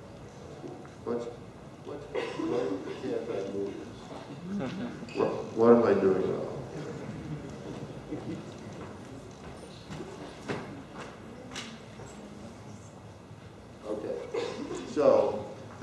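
A man speaks to an audience through a microphone in a large echoing room, pausing often.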